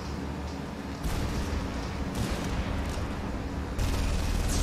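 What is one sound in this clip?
A deep electric hum roars steadily and grows louder.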